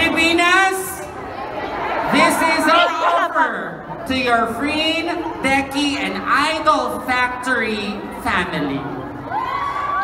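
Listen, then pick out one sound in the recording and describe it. A woman speaks with animation through a microphone over loudspeakers in a large echoing hall.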